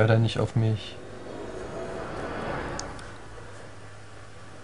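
A magical whoosh swells and fades.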